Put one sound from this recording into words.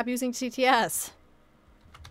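A young woman exclaims loudly in a sing-song voice, close to a microphone.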